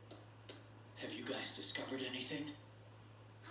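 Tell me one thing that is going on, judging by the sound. A young man speaks calmly, heard through a game's voice recording.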